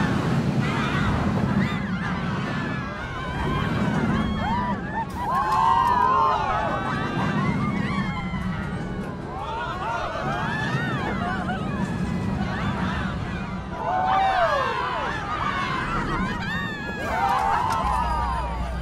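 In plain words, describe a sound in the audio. A roller coaster train rumbles and rattles along its track at speed.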